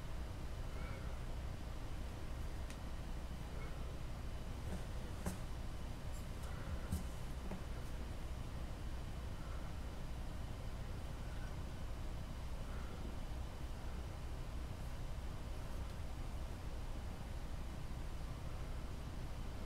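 Fingers press and smooth soft clay.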